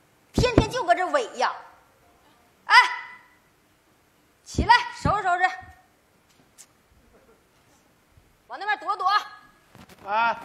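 An elderly woman speaks with animation through a stage microphone.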